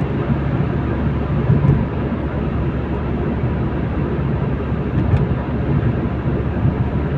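Tyres roar steadily on the road, heard from inside a car.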